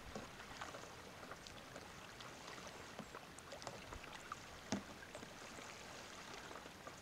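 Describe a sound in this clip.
A paddle splashes and drips in the water with each stroke.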